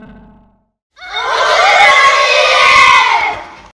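A group of children cheer and shout outdoors.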